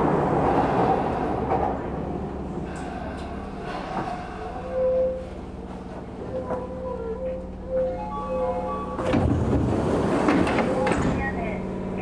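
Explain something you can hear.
An electric commuter train, heard from inside, slows to a stop.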